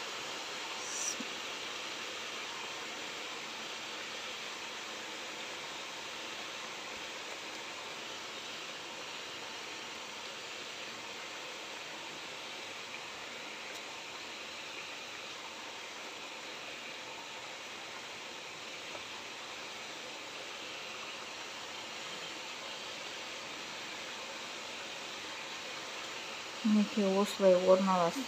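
Oil sizzles and crackles steadily in a hot pot.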